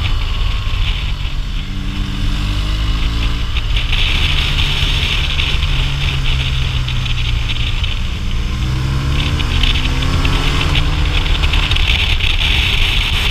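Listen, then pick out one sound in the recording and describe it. A motorcycle engine hums close by, rising and falling in pitch.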